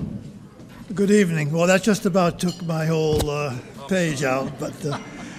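An elderly man speaks calmly into a microphone, heard through loudspeakers in a large room.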